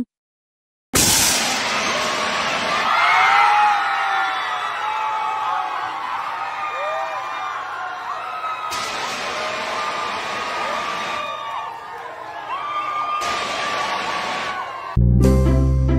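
A crowd cheers and screams loudly with excitement.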